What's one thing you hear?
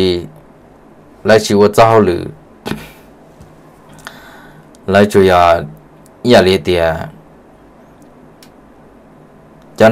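A young man speaks calmly into a microphone, in short bursts.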